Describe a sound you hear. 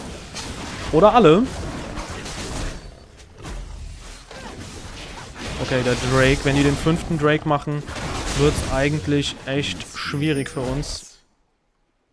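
Magic spells whoosh and crackle during a fight in a game.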